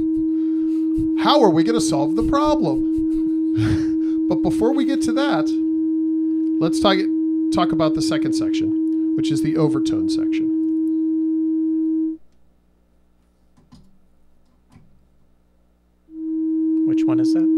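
A steady electronic tone hums from a synthesizer, cuts out and then comes back.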